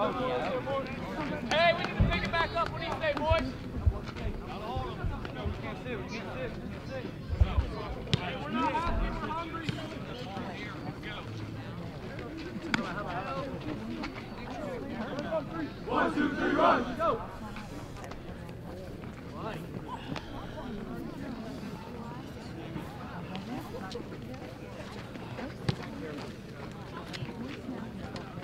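Spectators and players talk and cheer outdoors at a distance.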